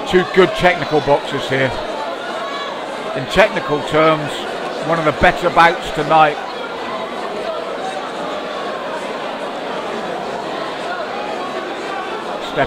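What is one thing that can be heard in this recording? A crowd murmurs throughout.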